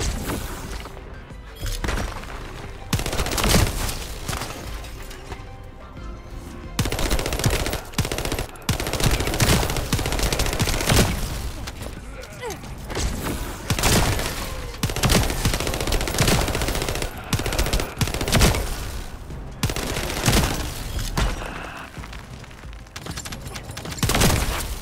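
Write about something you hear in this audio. Gunfire bursts and blasts from a video game ring out in quick succession.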